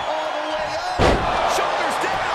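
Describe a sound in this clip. A body slams hard onto a wrestling ring mat with a loud thud.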